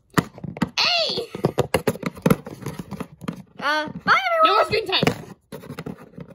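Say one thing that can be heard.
Small plastic toy figures tap and knock on a wooden surface.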